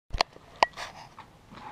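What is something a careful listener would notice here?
A metal tool knocks sharply against a horse's hoof.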